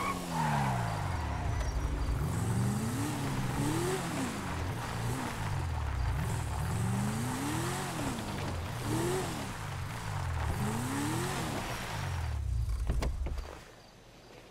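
A car engine revs up and down repeatedly.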